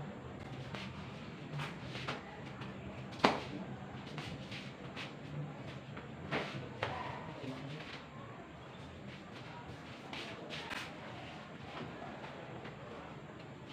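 Paper rustles as a person handles sheets.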